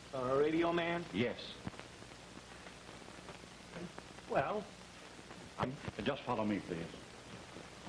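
Two men speak in turn in short exchanges, heard through an old, hissy film soundtrack.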